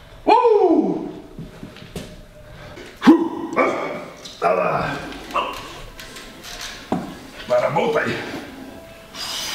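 A man grunts loudly with strain.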